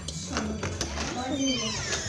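A door knob turns.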